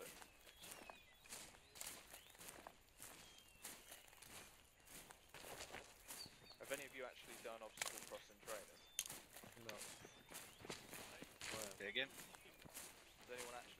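Footsteps rustle through dry grass and undergrowth.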